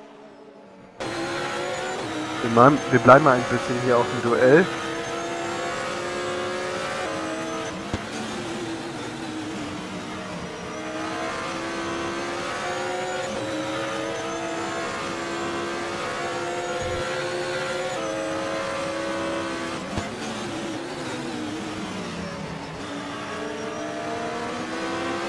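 A racing car engine drones steadily, rising and falling in pitch as it shifts gears.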